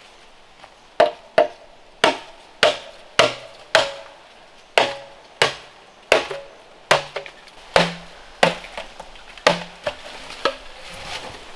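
A blade chops into a bamboo stalk with sharp, hollow knocks at a steady pace.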